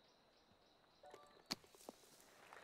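A golf club splashes a ball out of sand.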